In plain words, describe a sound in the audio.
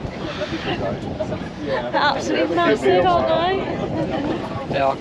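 A young woman laughs and talks close by, outdoors in strong wind.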